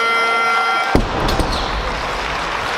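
A barbell loaded with rubber bumper plates is dropped onto a platform with a heavy thud.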